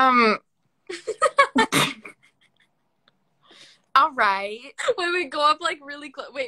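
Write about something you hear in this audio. A young woman laughs loudly over an online call.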